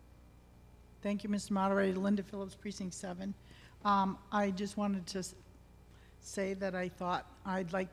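A middle-aged woman speaks into a microphone over a loudspeaker in a large echoing hall.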